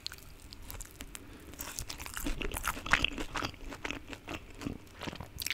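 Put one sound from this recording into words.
A young woman bites and chews crunchy food close to a microphone.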